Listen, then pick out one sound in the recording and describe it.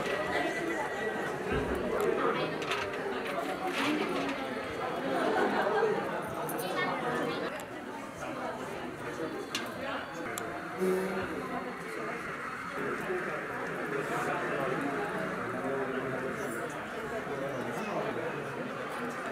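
A crowd of men and women chatters throughout an indoor room.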